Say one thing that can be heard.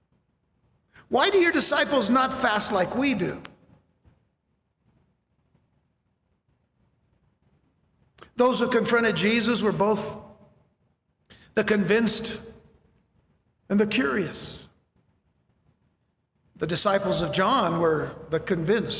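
A middle-aged man speaks with feeling into a microphone, in short bursts with pauses.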